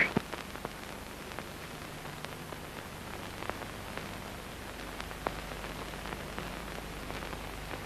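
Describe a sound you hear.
Cups and saucers clink softly.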